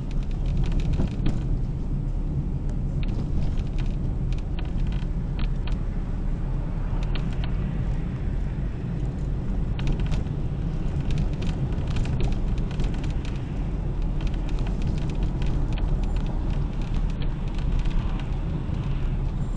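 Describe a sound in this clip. A car engine hums steadily from inside the cabin.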